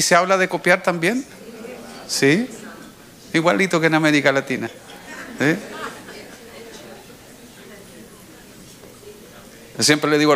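A middle-aged man speaks with animation into a microphone, pausing between phrases.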